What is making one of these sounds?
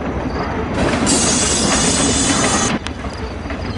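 Train wheels screech and grind on the rails.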